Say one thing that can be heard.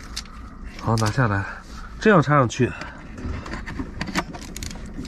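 Small plastic items click and tap as they are handled.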